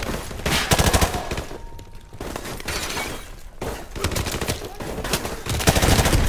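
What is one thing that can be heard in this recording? Glass shatters and tinkles.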